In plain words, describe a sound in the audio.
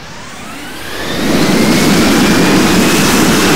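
Jet engines roar loudly as they power up.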